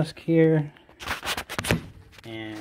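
Fingers rub and knock against a microphone close by.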